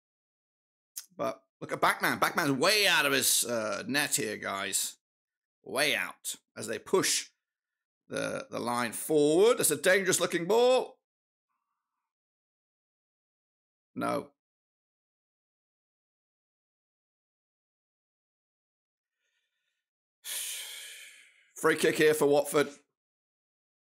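A middle-aged man talks with animation into a close microphone, in bursts with pauses.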